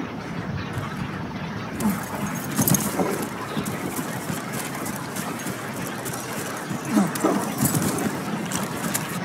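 Footsteps tread through grass at a steady walk.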